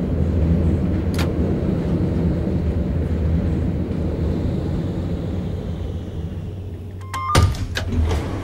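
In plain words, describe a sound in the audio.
Tram wheels rumble and clatter over the rails.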